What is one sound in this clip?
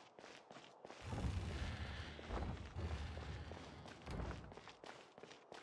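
A heavy door swings open with a deep rumble.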